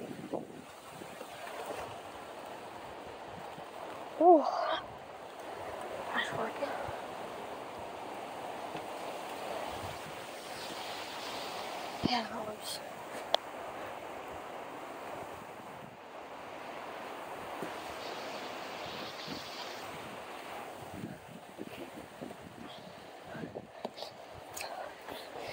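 Strong wind roars through trees outdoors.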